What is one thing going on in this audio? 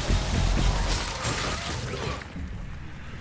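Weapons strike and clash loudly in a fight.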